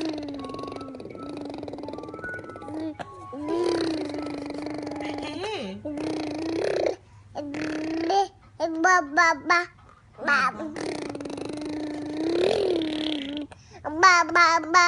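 A baby hums and babbles close by.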